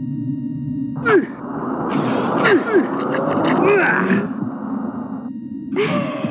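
Monsters screech and snarl in a fight.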